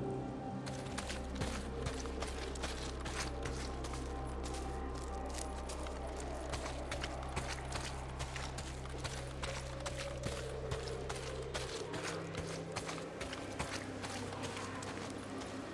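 Footsteps crunch through dry grass and brush at a quick pace.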